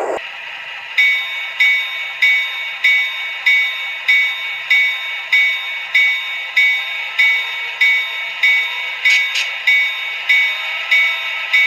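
A small tinny speaker plays a bell ringing steadily.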